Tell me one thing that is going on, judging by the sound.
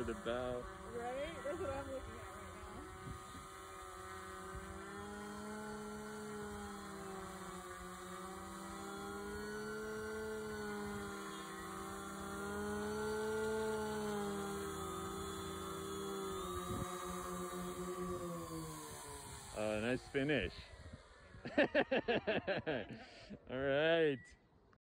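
A small electric boat motor whines steadily, its pitch rising and falling.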